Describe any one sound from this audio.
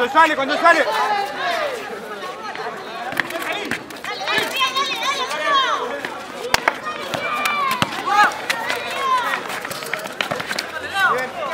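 A crowd shouts and cheers outdoors.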